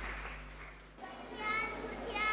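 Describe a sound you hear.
A group of young girls begins singing through microphones.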